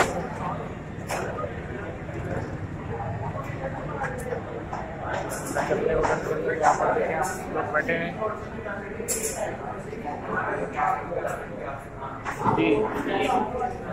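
A crowd murmurs in an indoor room.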